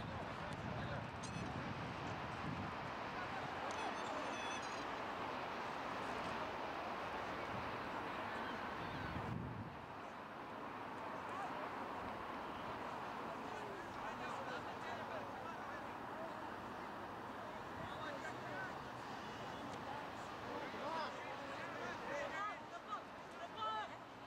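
Young players shout to each other across an open field, far off.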